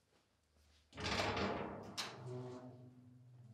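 A heavy metal door scrapes and rattles open.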